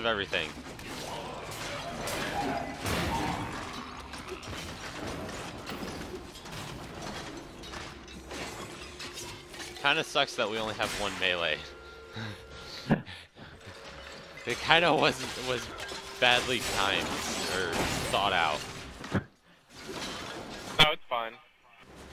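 Magic blasts and clashing combat effects crackle and boom repeatedly.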